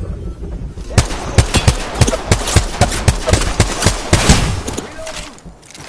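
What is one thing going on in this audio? A rifle fires rapid bursts of shots up close.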